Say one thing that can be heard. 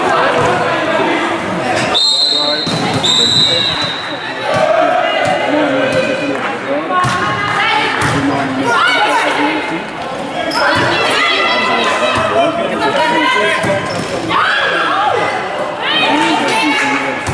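Young women players shout and cheer loudly in an echoing hall.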